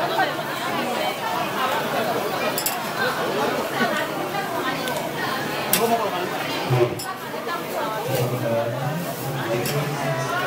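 Patties sizzle on a hot griddle.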